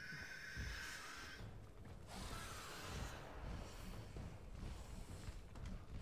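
A large beast crashes and thrashes during a fight.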